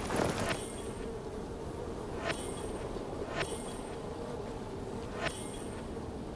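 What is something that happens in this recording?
Short sharp clicks sound as items are picked up in a video game.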